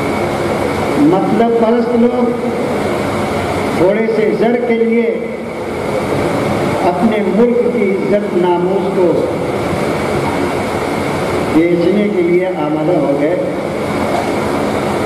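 An elderly man speaks with emotion through a microphone and loudspeakers.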